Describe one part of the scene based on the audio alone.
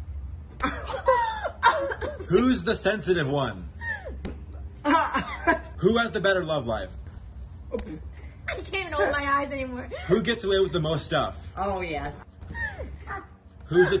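A young man laughs and screams loudly.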